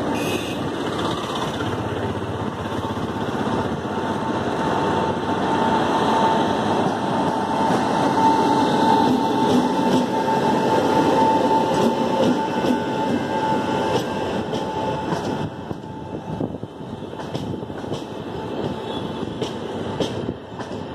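An electric train rumbles past close by on the tracks.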